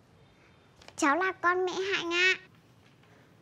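A little girl speaks in a high, bright voice.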